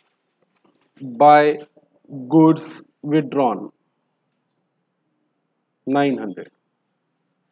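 A man speaks calmly and clearly into a close microphone, in short phrases.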